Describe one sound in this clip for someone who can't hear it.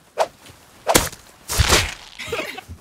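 A hatchet strikes a body with a dull thud.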